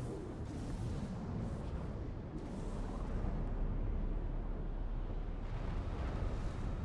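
A deep, steady rumble of a swirling storm fills the air.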